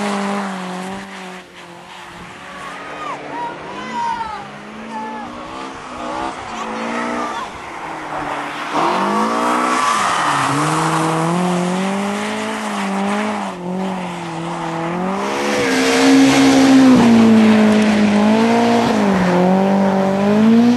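A rally car engine revs hard and roars past.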